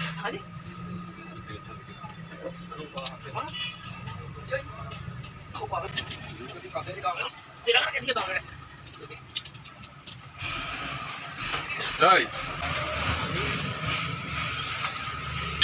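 Metal tools clink and knock against an engine.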